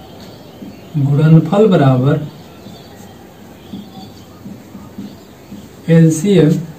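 A young man speaks calmly and clearly nearby.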